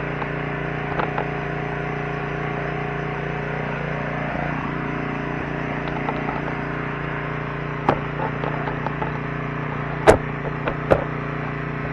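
A tractor engine idles with a steady, low rumbling hum.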